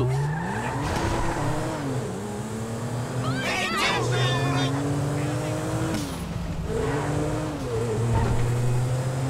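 A car engine revs up and down as it shifts gears.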